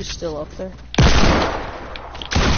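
A gun fires loud shots.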